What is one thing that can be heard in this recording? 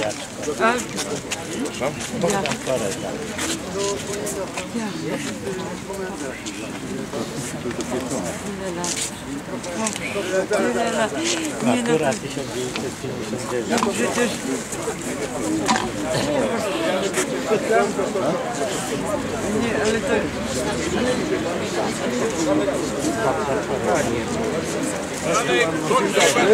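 Several men talk at once outdoors, close by.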